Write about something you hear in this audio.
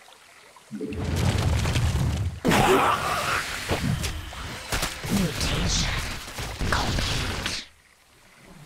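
Gunfire and explosions rattle in a loud skirmish.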